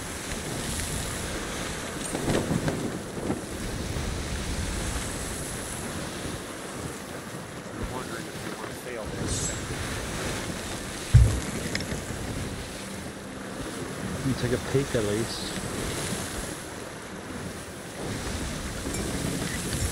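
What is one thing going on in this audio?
Stormy sea waves crash and roar around a ship.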